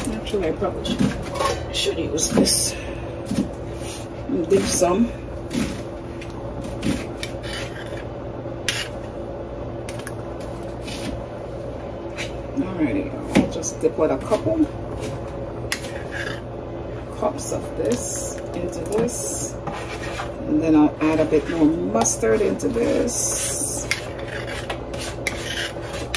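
A metal ladle clinks against a glass jug.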